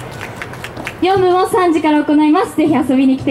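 A young woman speaks loudly and with animation through a loudspeaker.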